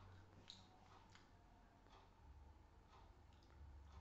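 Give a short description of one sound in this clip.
A man crunches nuts while eating.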